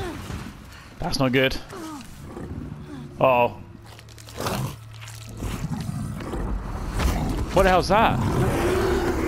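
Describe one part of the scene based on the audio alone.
A creature lets out harsh, gurgling shrieks.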